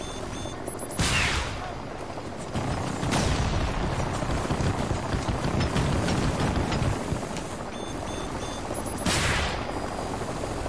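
A rocket launcher fires with a sharp whoosh.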